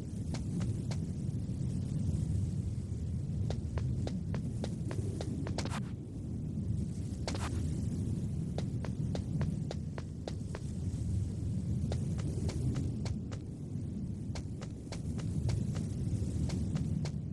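Footsteps tap steadily on a hard metal floor.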